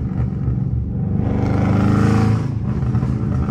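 A car engine roars briefly as it accelerates.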